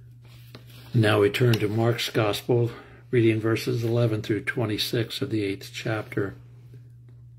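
An elderly man speaks calmly, close to the microphone.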